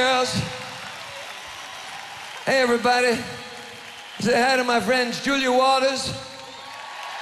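A man sings into a microphone on a loudspeaker system.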